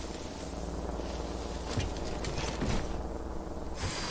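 A bike crashes onto its side with a metal clatter.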